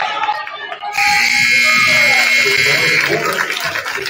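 A loud buzzer sounds steadily.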